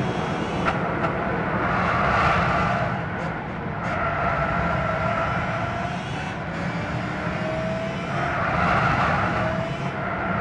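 A racing car engine roars steadily, its pitch rising and falling as the car shifts gears.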